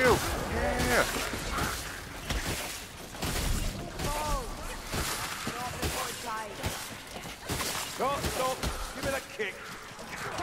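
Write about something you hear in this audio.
Blades strike and slash with heavy thuds.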